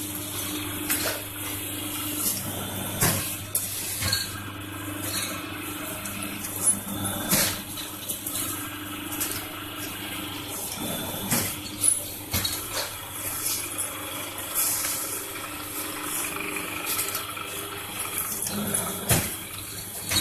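A press thumps and clanks shut again and again.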